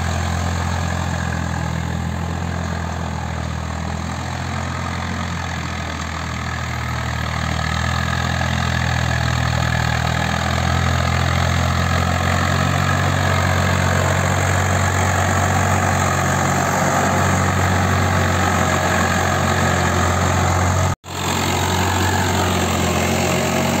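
A tractor engine rumbles steadily, growing louder as it comes closer.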